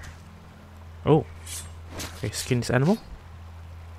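A knife slices wetly through flesh.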